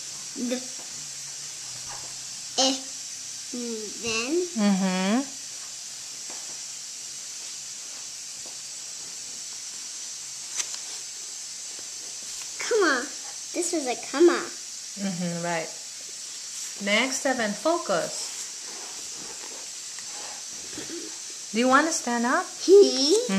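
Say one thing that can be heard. A young child reads aloud slowly, close by.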